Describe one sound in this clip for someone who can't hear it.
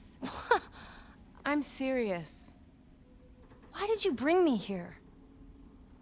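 A young girl speaks emotionally and close by.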